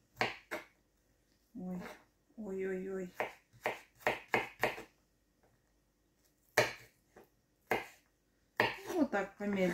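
A knife chops onion on a wooden board with quick knocks.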